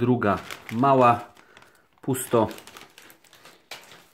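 A foil card packet crinkles and rustles as it is handled.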